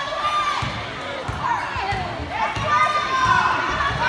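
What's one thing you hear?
A basketball bounces with hollow thuds on a wooden court.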